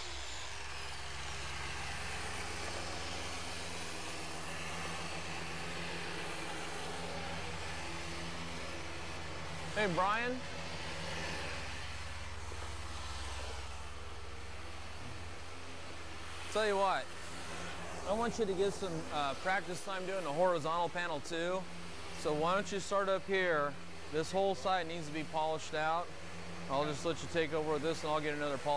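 A handheld polishing machine hums steadily.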